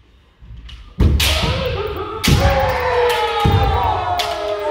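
Feet stamp on a wooden floor.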